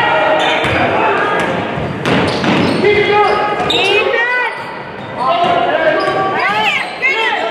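A crowd murmurs and calls out in an echoing gym.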